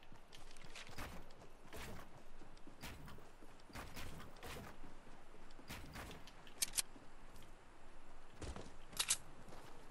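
Wooden planks snap into place with sharp, hollow knocks.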